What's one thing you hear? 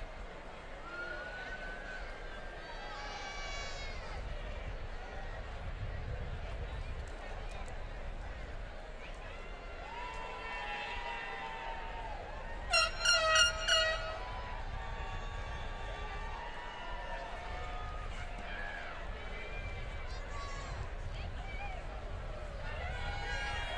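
Young men and women shout and whoop with excitement.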